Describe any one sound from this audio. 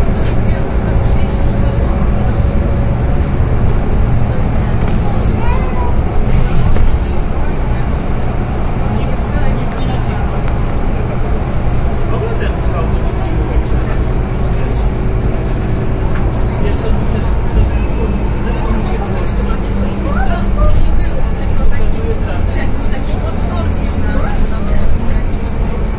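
Loose parts of a bus rattle and clatter.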